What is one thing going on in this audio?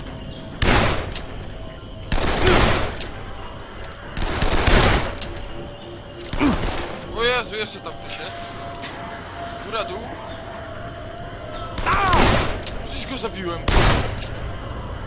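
Loud gunshots fire in bursts.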